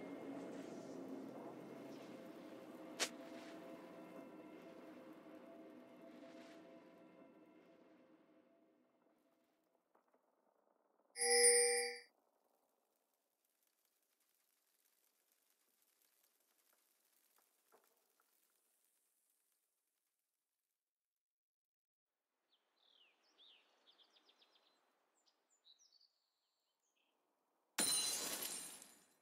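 Video game sound effects chime and clash in short bursts.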